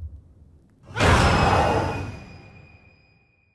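A child screams in terror.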